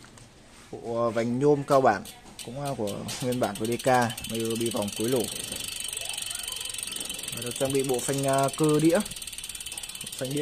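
A bicycle freewheel ticks as a wheel spins.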